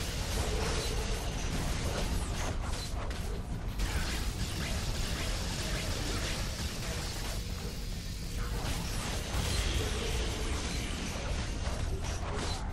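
Energy blasts zap and crackle in quick bursts.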